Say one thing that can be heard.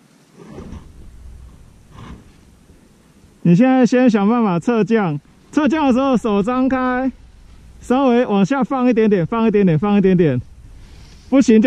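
Ski poles crunch and scrape in packed snow close by.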